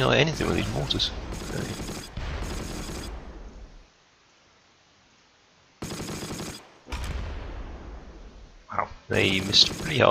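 Shells explode with a dull boom.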